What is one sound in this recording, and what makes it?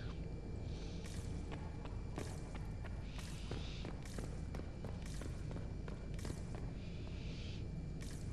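Footsteps echo on a stone floor.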